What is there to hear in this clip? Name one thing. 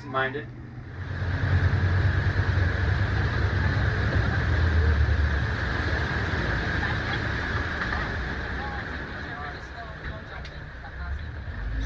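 Water rushes and splashes against a moving boat.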